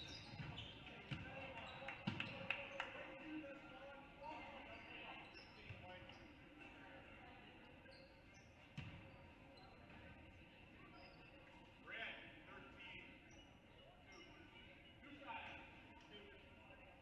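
A crowd murmurs and chatters in the stands.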